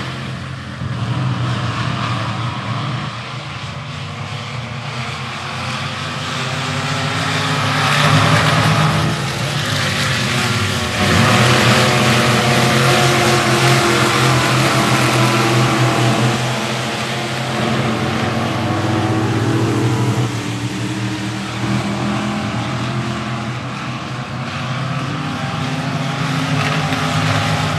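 Race car engines roar loudly around a dirt track outdoors.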